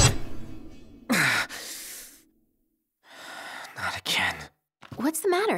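A young man sighs and speaks wearily.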